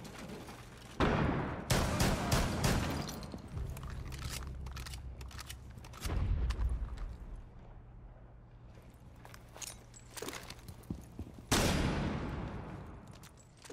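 Gunshots ring out loudly in sharp bursts, with echoes trailing off.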